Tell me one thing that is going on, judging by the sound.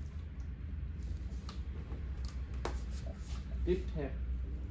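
A fabric garment rustles and flaps as it is tossed.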